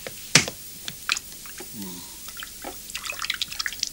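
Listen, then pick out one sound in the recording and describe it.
Dishes clink and clatter in a sink.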